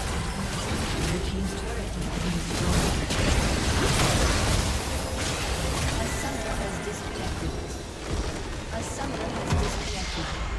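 Magical blasts and clashing effects crackle in a fast game battle.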